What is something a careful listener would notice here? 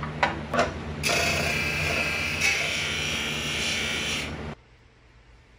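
A buffing wheel grinds and hisses against brass.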